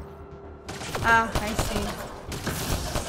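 A young woman speaks briefly into a microphone.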